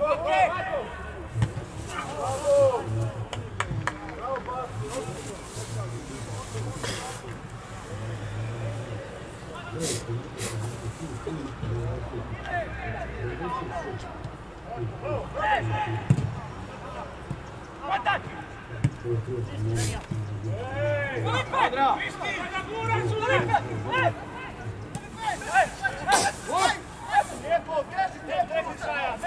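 Men shout and call out to each other across an open pitch.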